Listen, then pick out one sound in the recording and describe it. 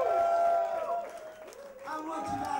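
A crowd cheers loudly in a large room.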